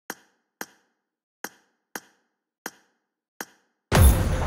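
Menu buttons click sharply several times.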